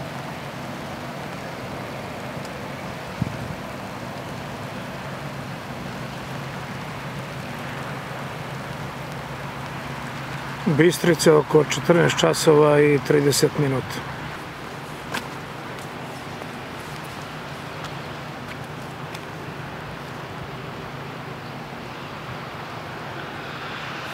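A swollen river rushes and churns steadily outdoors.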